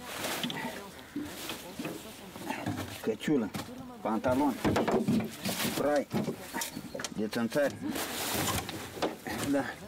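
A man rummages in a bag, rustling cloth.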